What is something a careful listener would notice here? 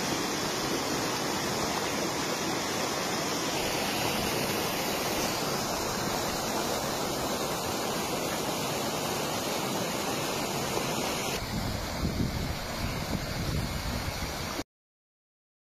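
Floodwater rushes steadily past.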